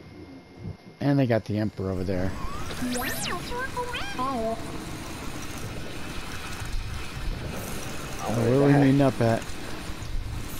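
A small robot beeps and warbles in quick chirps.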